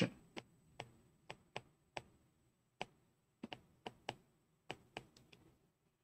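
A pen taps sharply on a hard writing surface.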